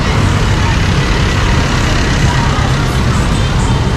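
A jeepney's diesel engine rattles loudly as it passes.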